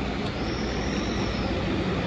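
A car engine hums as a car drives past.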